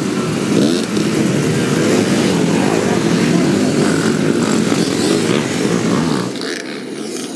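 Many dirt bike engines rev and roar close by.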